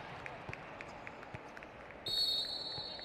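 A volleyball bounces repeatedly on a hard floor.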